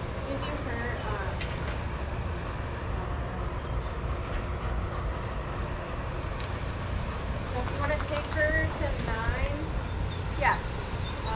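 A dog whines in short high cries.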